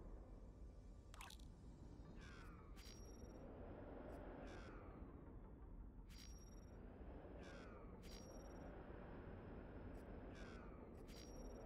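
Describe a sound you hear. A spaceship engine hums with a steady low rumble.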